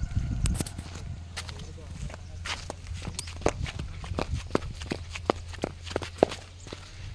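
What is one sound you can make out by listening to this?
Footsteps crunch steadily on a dirt road.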